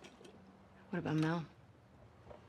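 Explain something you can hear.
A young woman asks a short question in a calm voice.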